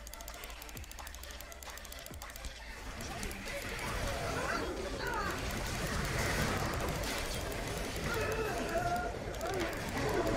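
Game spells whoosh and crackle in a fight.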